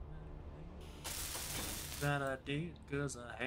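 A welding torch hisses and crackles with sparks.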